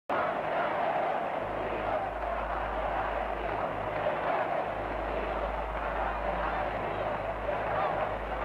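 A man speaks loudly through a microphone.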